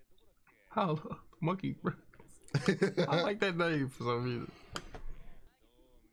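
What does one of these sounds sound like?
A young man laughs softly close by.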